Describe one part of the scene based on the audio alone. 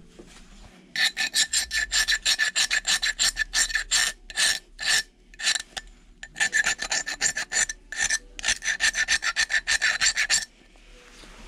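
A metal tool scrapes rapidly against a hard plastic cup.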